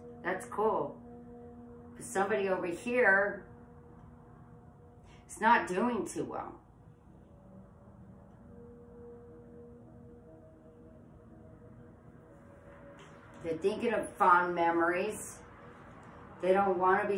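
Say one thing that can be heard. A woman speaks calmly and close by, with pauses.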